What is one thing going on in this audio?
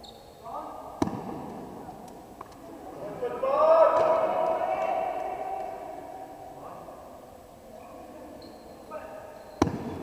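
A bat cracks against a ball in a large echoing hall.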